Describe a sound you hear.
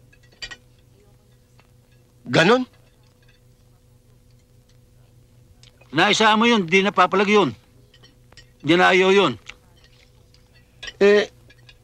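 Cutlery clinks softly against a plate.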